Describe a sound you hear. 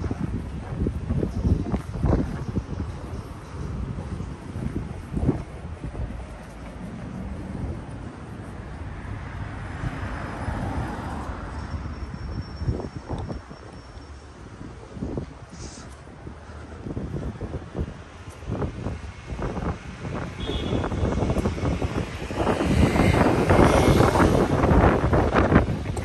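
Footsteps tap on a pavement close by.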